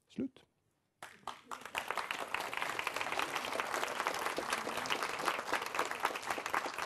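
An audience applauds steadily in a room.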